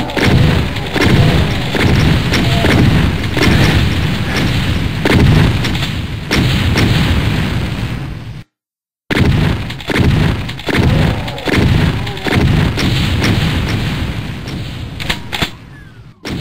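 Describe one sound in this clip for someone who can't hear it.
Gunshots fire rapidly again and again, each with a booming echo.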